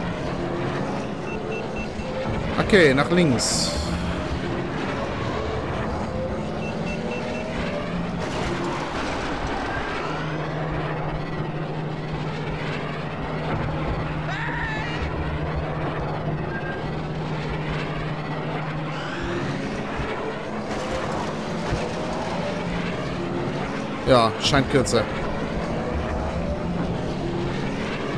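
A racing craft's engines roar steadily at high speed.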